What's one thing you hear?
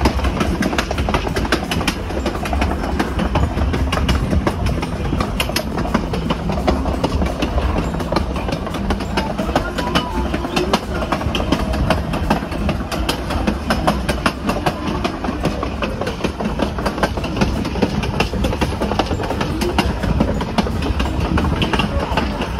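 Train wheels clack over track joints.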